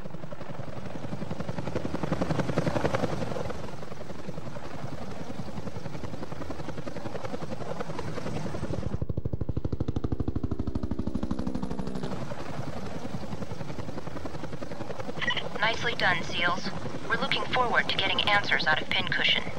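A helicopter's rotor thumps steadily overhead.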